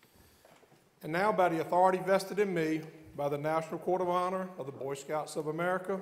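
A man speaks clearly and steadily through a microphone in a large, echoing hall.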